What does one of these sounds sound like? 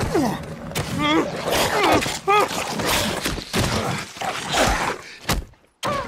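A man grunts and cries out in struggle.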